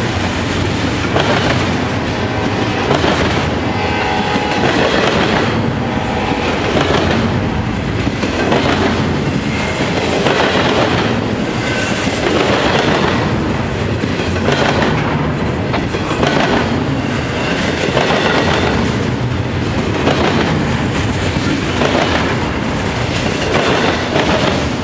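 Steel wheels clack rhythmically over rail joints.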